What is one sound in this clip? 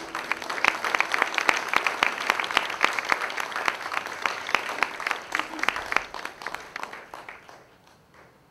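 A guitar is strummed rapidly.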